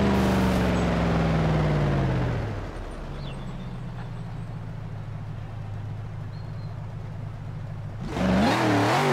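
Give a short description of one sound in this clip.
A car engine winds down and settles into a low, steady idle.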